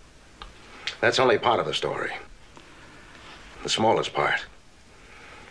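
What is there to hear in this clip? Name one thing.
An older man speaks in a low, calm voice.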